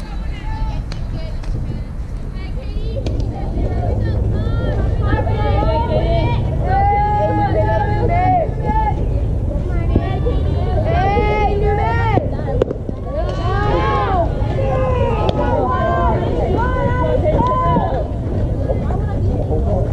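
Wind rumbles across the open field.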